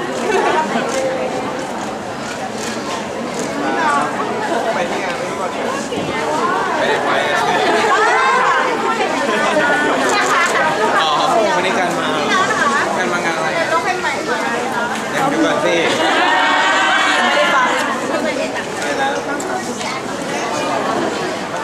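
A crowd of young women chatters and squeals excitedly all around.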